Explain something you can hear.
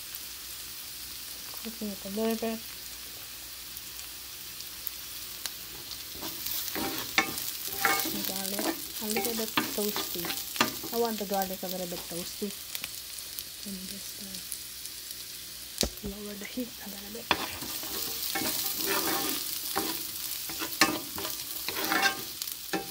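Food sizzles steadily in a hot pan.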